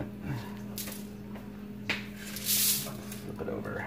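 Raw ground meat slaps softly onto a metal rack.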